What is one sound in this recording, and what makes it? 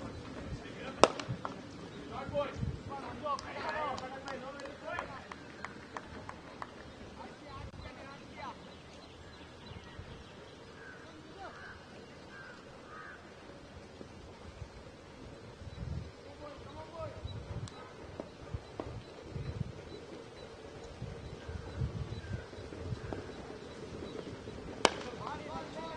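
A cricket bat cracks sharply against a ball.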